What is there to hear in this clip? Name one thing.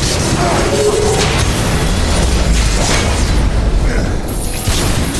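Heavy thuds and blasts rumble during a battle.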